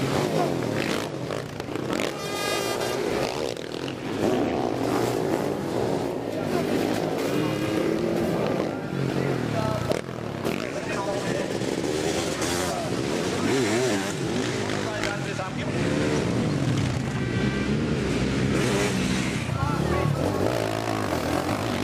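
Motorcycle engines roar and rev loudly.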